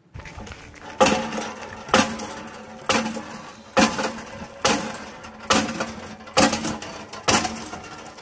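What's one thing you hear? A hand pump handle clanks rhythmically.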